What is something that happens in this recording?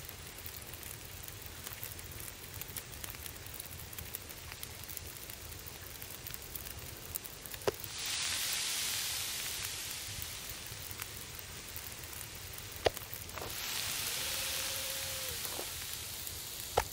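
A fire crackles softly in a metal barrel.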